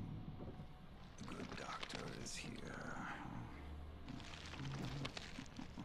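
Footsteps creak on wooden floorboards.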